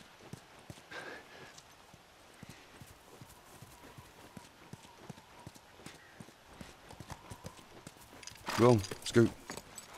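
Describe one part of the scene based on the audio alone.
Footsteps crunch steadily on pavement and grass.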